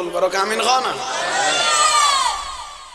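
A man chants in a drawn-out singing voice through a microphone.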